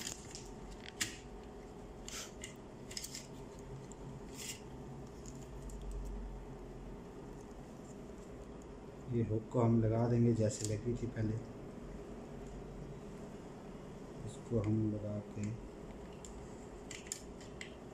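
Plastic parts click and clatter as they are handled.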